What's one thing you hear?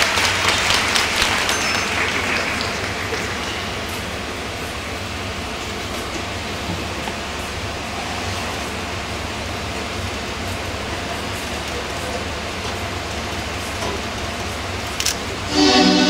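Skate blades scrape and hiss across ice in a large echoing hall.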